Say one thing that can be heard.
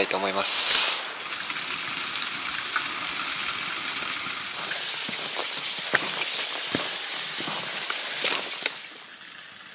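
A small waterfall splashes steadily onto rocks.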